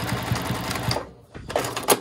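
A sewing machine stitches with a rapid, steady whirr, then stops.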